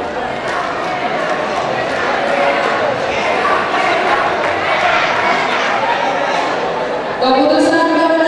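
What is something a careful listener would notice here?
A large crowd murmurs and chatters in an echoing hall.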